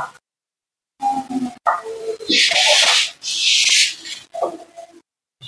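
A man speaks calmly, heard through an online call.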